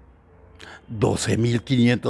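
A man speaks loudly and with animation into a headset microphone close by.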